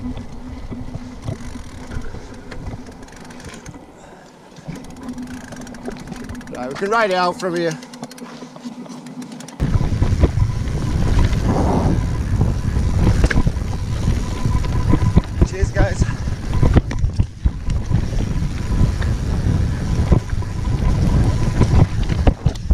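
Bicycle tyres rattle and crunch over a rough, rocky trail.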